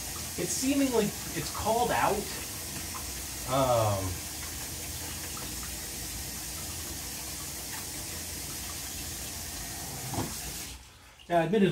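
Water runs steadily from a tap into a sink.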